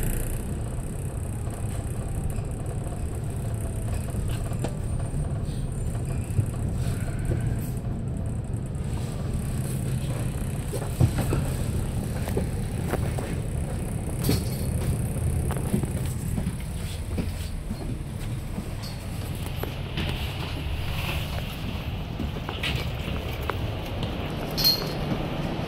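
A bus engine rumbles low and steady.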